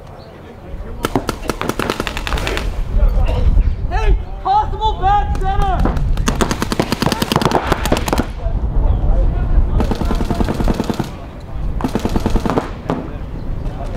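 Paintball markers fire in rapid bursts of pops.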